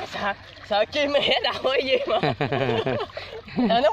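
Water sloshes around legs wading through it.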